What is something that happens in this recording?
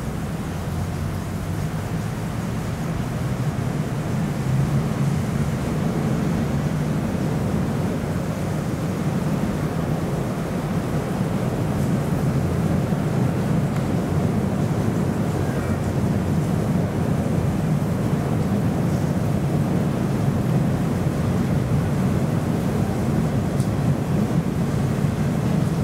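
Water splashes as a large animal paddles and climbs in a pool.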